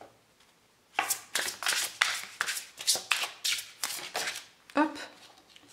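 Playing cards are shuffled with quick, crisp riffling snaps.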